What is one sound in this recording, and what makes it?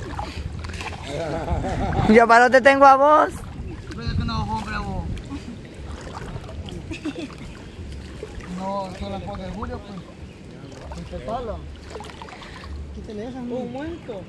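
Water splashes around people wading.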